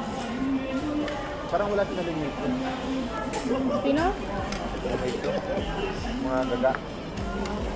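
Young men and women chat and laugh nearby.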